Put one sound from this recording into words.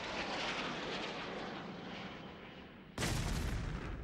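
A rocket roars as it flies.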